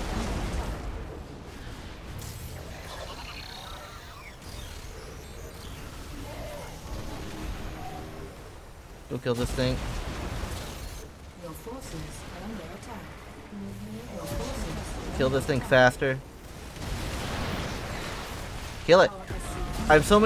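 Science-fiction weapons fire in a game battle.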